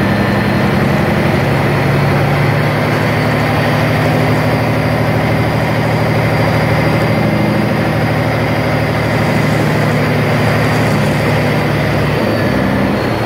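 Truck tyres crunch over gravel.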